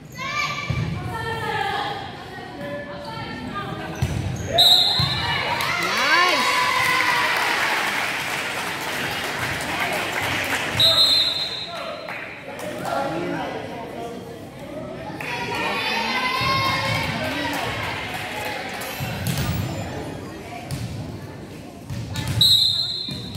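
A volleyball is hit with sharp slaps in a large echoing gym.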